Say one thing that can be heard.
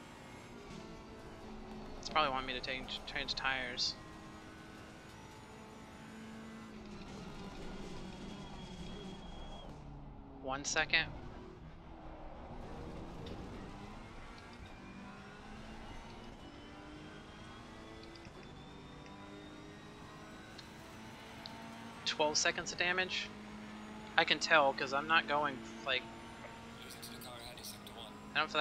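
A racing car engine drones steadily, rising and falling with gear changes.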